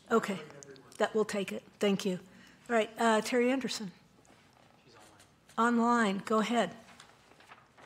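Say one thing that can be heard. A man speaks calmly into a microphone in a large echoing hall.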